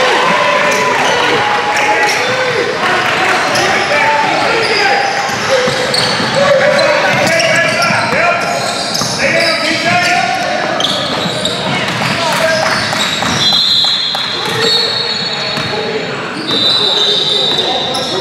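Spectators and players shout and chatter in a large echoing gym.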